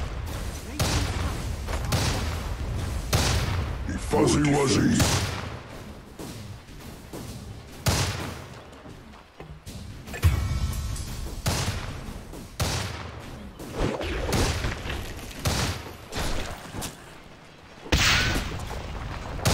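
Spell effects and weapon hits crackle and thud in a game battle.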